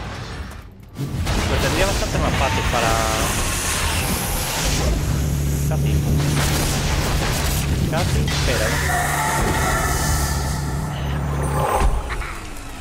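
Magic spells crackle and boom in a fierce battle.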